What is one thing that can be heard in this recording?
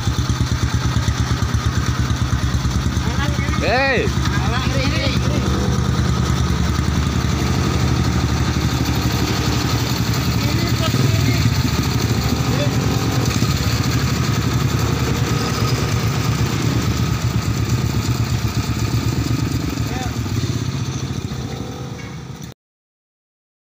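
Motorbikes and cars drive past on a road.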